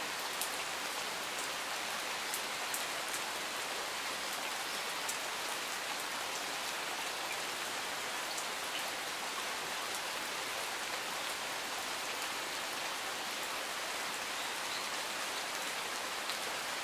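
Steady rain falls and patters on leaves and gravel outdoors.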